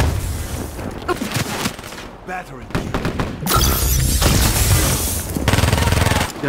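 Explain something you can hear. Gunfire crackles in short bursts.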